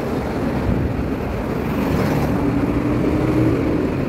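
Cars drive past on the road.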